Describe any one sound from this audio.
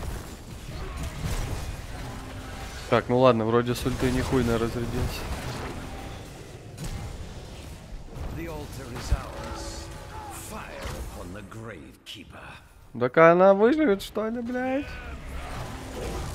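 Magical spell effects whoosh and crackle during a fantasy battle.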